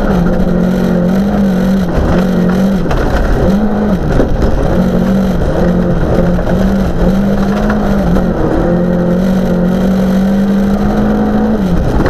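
A car engine roars loudly, revving up and down as gears change.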